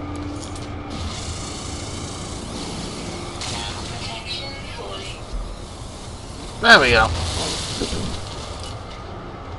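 A mining laser hisses steadily as it cuts into rock.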